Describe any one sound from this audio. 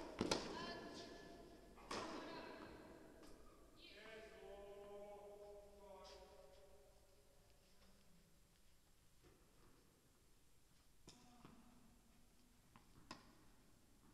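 A tennis racket strikes a ball with sharp pops that echo in a large hall.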